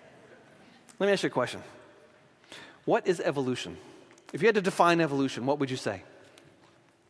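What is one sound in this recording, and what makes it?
An older man speaks calmly into a microphone in a large echoing hall.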